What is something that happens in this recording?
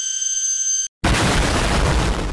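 A huge explosion booms with a deep roar.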